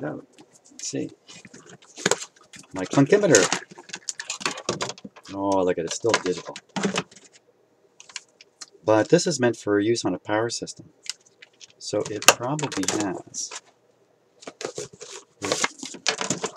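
A plastic meter knocks and rattles as it is handled.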